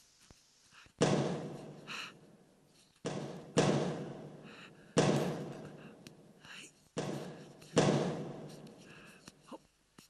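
A basketball bounces on a hard floor, echoing in a large hall.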